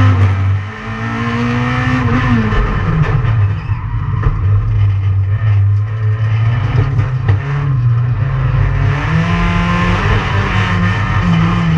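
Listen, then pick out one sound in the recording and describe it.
A racing car engine roars loudly from inside the cabin, revving up and down through gear changes.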